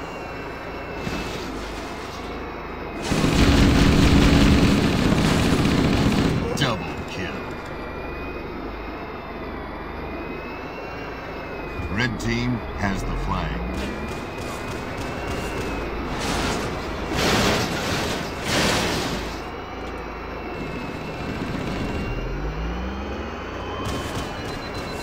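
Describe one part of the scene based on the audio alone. A hovering vehicle's engine hums steadily throughout.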